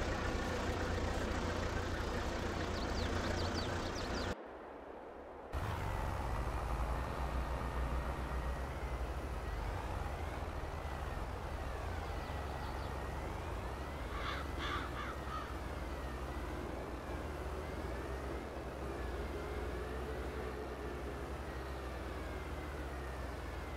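A tractor engine hums steadily with a low rumble.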